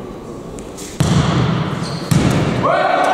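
A volleyball is struck with sharp thuds in a large echoing hall.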